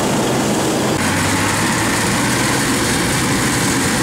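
A second harvester's engine rumbles steadily nearby.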